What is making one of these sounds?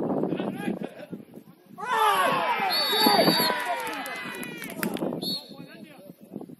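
Several young men shout and call out to one another across an open field.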